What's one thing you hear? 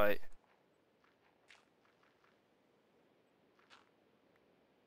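Blocks of dirt crunch softly as they are dug out, one after another.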